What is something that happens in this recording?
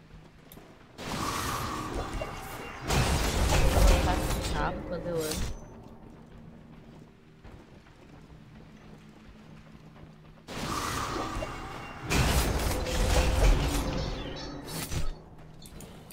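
Heavy whooshing blasts and impacts of a video game fight burst out loudly.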